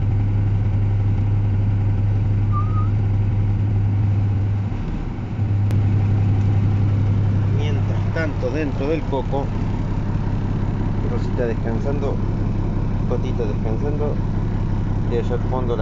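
A vehicle engine hums steadily at low pitch.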